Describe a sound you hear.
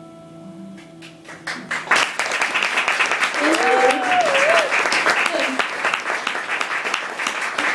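Guitars play a gentle tune through an amplifier.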